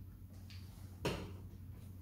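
A chess piece clacks down on a wooden board.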